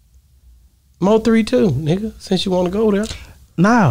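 A young man speaks with animation, close into a microphone.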